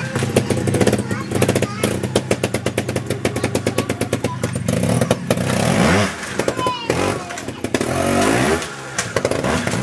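A motorbike tyre thumps onto logs and timber.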